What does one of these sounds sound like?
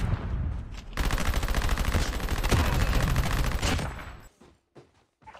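Automatic gunfire rattles rapidly at close range.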